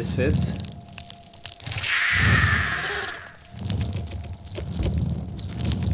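A giant creature stomps heavily with deep, rumbling thuds.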